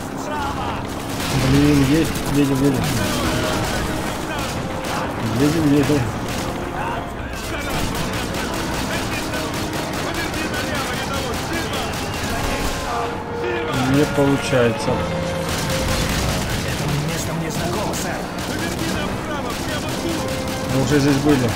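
A heavy machine gun fires rapid bursts close by.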